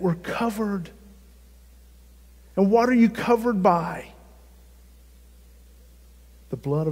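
A middle-aged man speaks with animation through a microphone, in bursts with pauses.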